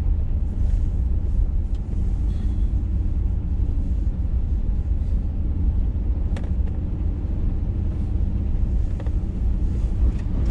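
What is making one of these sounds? A vehicle engine rumbles steadily from inside the cab.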